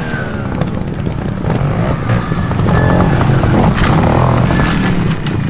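A motorcycle engine revs and sputters close by.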